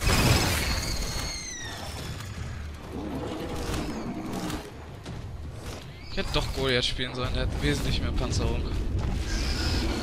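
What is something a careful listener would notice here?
A monster breathes out a roaring blast of fire.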